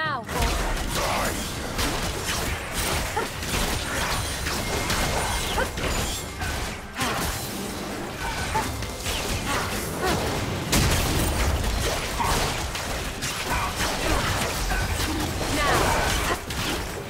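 Video game spells and attacks crackle and blast during a fight.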